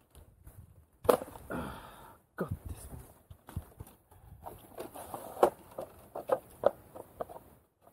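Leaves and branches rustle as a man moves through brush.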